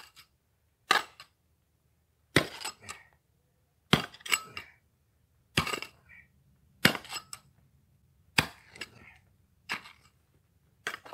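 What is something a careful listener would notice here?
A shovel scrapes and digs into loose gravel in repeated strokes.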